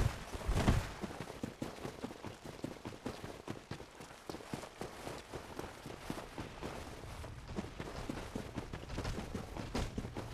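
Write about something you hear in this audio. Armoured footsteps thud and clink on stone and earth at a steady running pace.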